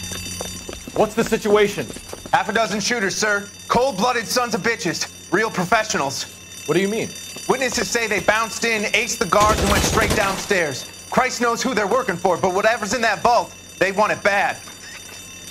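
A young man talks urgently, close by.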